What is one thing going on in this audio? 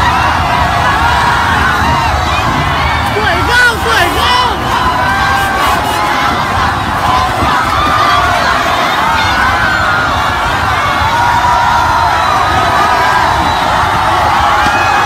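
A large crowd of young men and women cheers and shouts excitedly outdoors.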